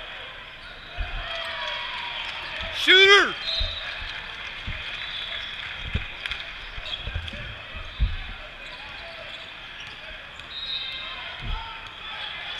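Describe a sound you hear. A basketball bounces on a hard court in a large echoing hall.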